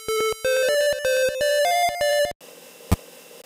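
A short electronic melody plays in bright beeping notes.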